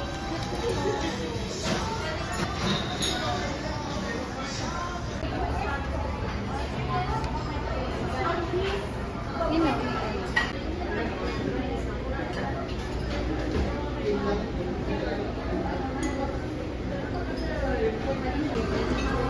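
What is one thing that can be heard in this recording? Many people chatter around the room.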